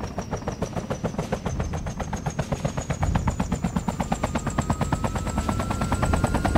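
A helicopter engine whines high, slowly rising in pitch.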